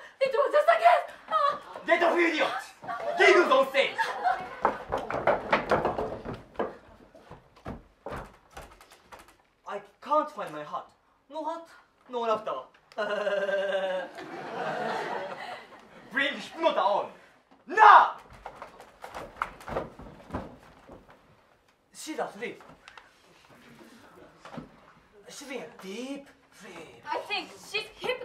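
Young women speak and exclaim theatrically.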